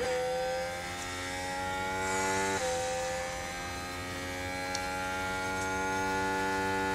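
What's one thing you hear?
A racing car engine whines loudly at high revs and briefly dips as it shifts gear.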